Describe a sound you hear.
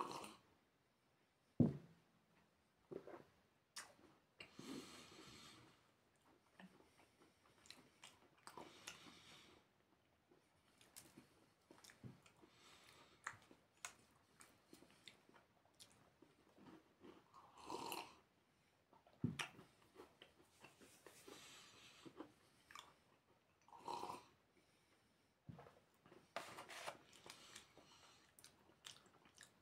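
A young man chews crunchy food close by.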